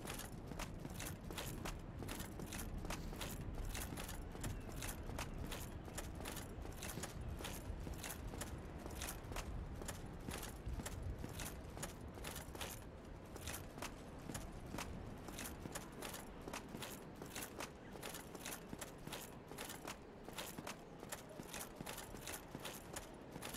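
Footsteps clack steadily on stone.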